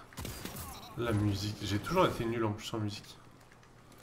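A young man speaks with animation into a headset microphone.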